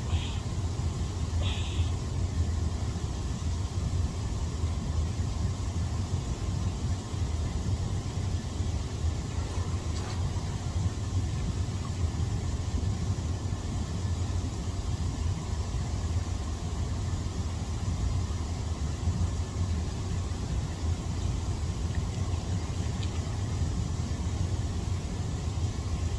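Bubbling water churns and roars steadily in a hot tub.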